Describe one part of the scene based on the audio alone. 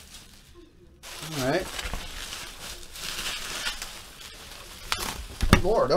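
Plastic bubble wrap crinkles and rustles close by.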